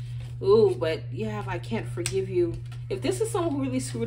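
A paper card is set down on a table with a soft tap.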